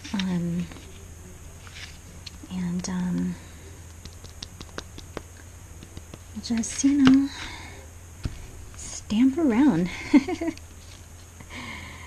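A rubber stamp taps against an ink pad.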